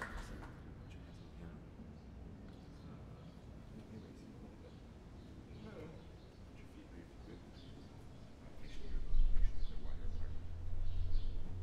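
A child plays a few soft notes on a piano.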